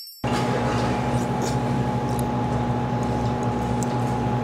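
A young man chews food close to a microphone.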